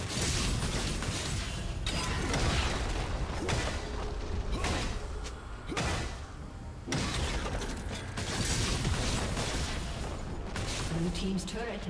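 Magical spell effects whoosh and clash in a busy fight.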